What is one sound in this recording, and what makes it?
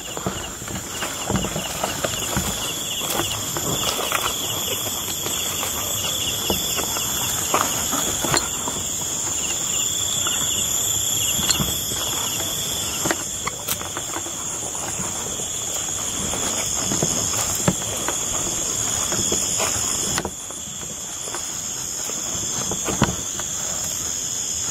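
Insects chirp steadily outdoors at night.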